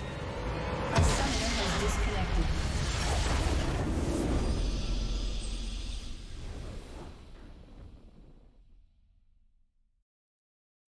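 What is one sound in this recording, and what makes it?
A triumphant game fanfare swells and then fades away.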